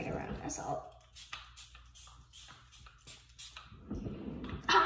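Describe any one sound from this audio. A spray bottle hisses in short bursts.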